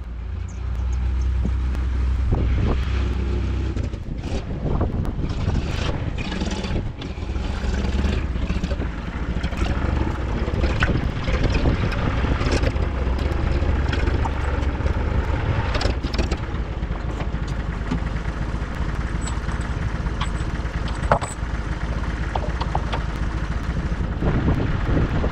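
A tractor engine rumbles steadily as the tractor drives closer.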